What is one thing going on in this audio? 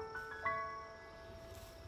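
A bright chime of rising tones rings out.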